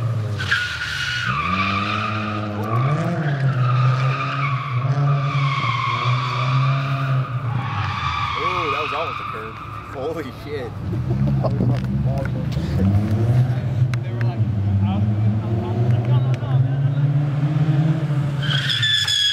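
A car engine revs loudly, its pitch rising and falling again and again.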